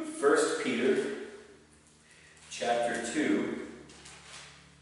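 An older man speaks calmly in a slightly echoing room.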